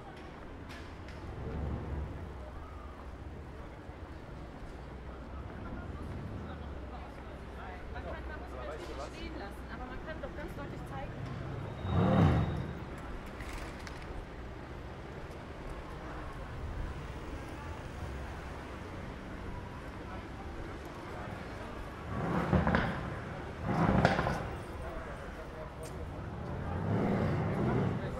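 Footsteps tap on paving stones.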